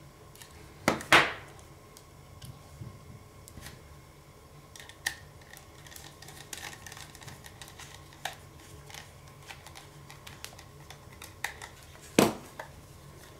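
Small metal parts clack as they are handled.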